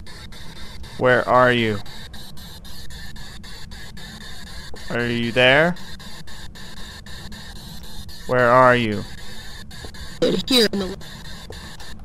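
A small handheld radio gives out warbling, gliding tones.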